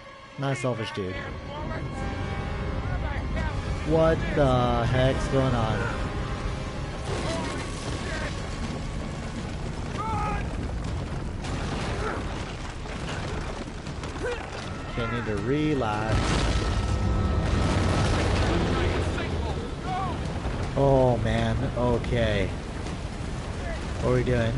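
Stone rumbles and crumbles in a long, heavy roar.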